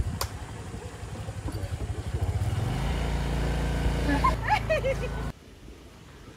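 A scooter engine hums as it idles and pulls away.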